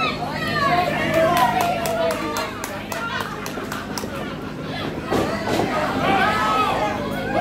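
A small crowd of men and women cheers and shouts in a small echoing hall.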